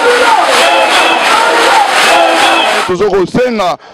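A crowd sings and chants loudly outdoors.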